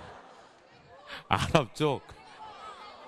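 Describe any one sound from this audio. A crowd of young people shouts and laughs together.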